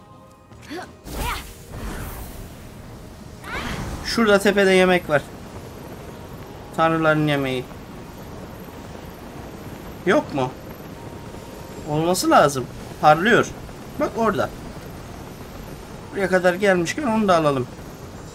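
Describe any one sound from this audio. A rush of air whooshes as wings spread for a glide.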